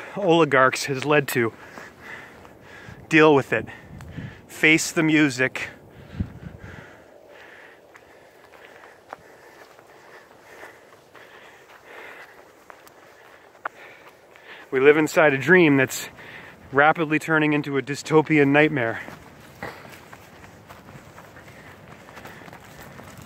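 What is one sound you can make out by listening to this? Footsteps crunch on a dry, leafy trail.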